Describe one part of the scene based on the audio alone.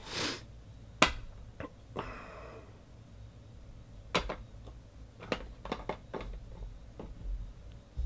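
Cards and card packs tap and click as hands handle them.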